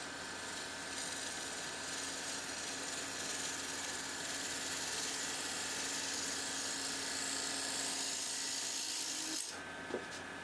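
A gouge shaves wood with a steady hissing scrape.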